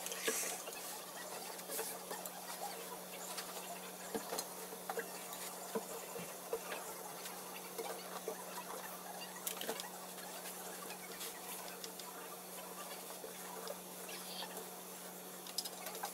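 Fabric rustles and flaps as clothes are handled.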